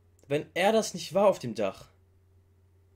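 A young man speaks briefly and with animation, close to a microphone.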